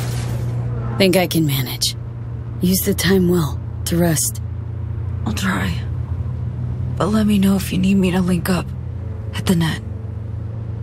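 A young woman speaks quietly and calmly nearby.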